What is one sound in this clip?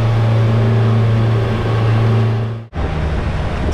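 Boat engines drone steadily.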